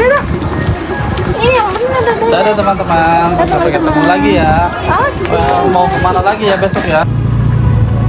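A small boy babbles and sings close by.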